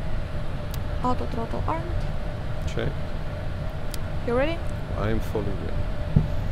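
A young woman speaks briefly over a headset intercom.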